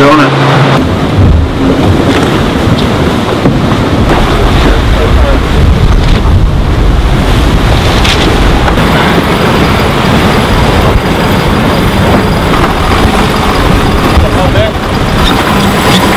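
Waves rush and splash against a moving boat's hull.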